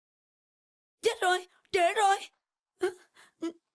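A young woman speaks with agitation, close by.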